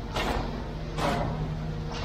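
A concrete screed machine hums.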